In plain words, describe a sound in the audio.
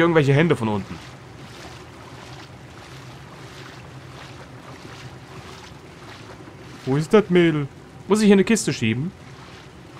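Small footsteps splash through shallow water.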